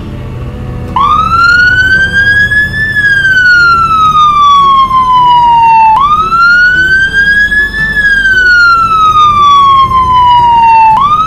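A police siren wails, rising and falling in long sweeps.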